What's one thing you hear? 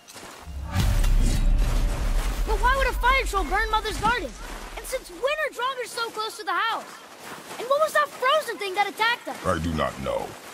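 Heavy footsteps crunch through snow.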